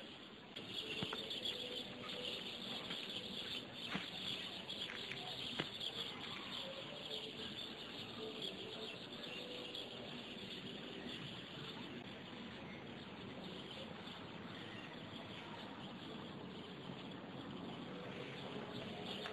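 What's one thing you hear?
Wind blows steadily across the open ground outdoors.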